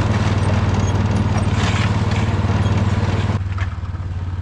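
A plough blade scrapes and pushes through snow.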